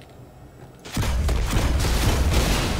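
An energy weapon fires with a crackling blast.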